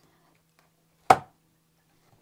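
A hardcover book thumps softly as its cover is flipped open.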